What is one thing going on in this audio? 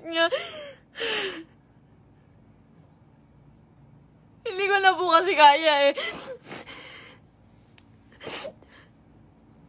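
A young woman sniffles and gasps for breath.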